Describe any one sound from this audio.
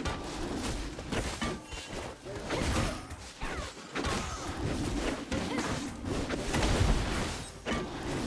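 Video game weapons clash and strike.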